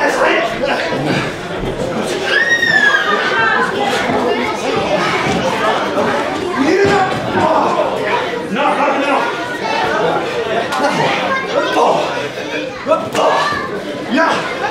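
A crowd chatters and shouts around the ring.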